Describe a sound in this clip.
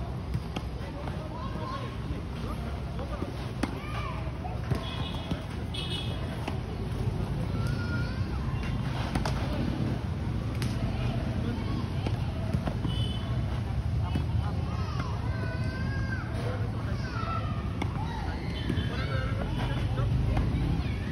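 Children call out outdoors.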